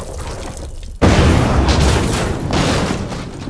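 A loud explosion bursts suddenly.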